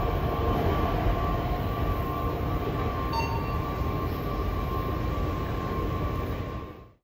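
Train brakes squeal with a steady high whine.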